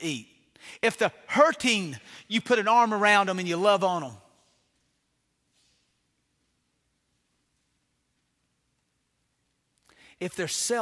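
A middle-aged man preaches forcefully through a microphone, pausing for long silences.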